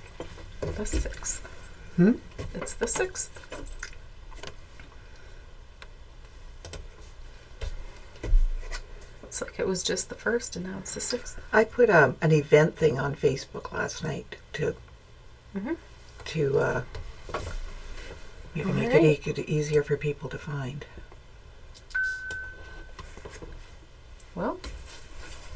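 A younger woman speaks briefly nearby.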